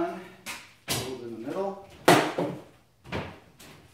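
A plastic cooler thumps onto a wooden shelf.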